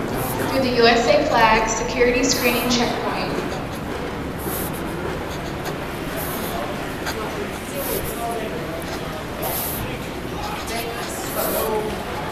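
Suitcase wheels roll across a hard floor.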